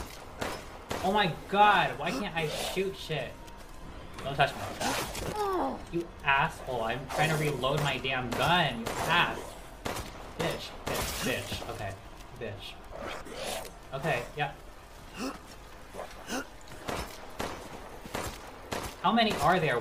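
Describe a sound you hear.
A young man talks with animation into a headset microphone, close by.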